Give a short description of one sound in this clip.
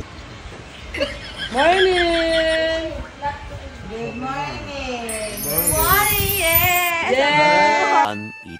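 A young woman sings loudly nearby.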